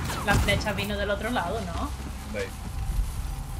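A young woman talks with animation into a microphone.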